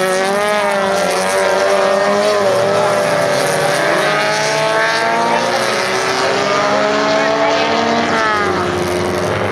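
Several small race car engines roar and whine close by, rising and falling in pitch as the cars pass.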